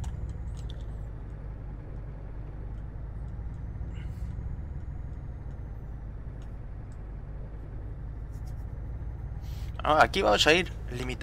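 A truck engine rumbles steadily at a low pitch.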